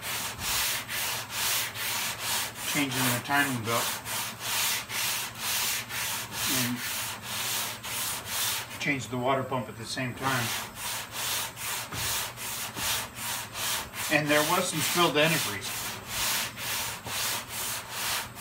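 A sanding block scrapes back and forth on a metal panel in quick, steady strokes.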